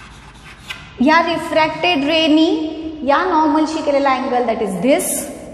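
A young woman speaks calmly and clearly, as if explaining, close to a microphone.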